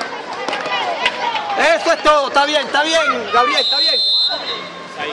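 Young boys shout excitedly nearby, outdoors.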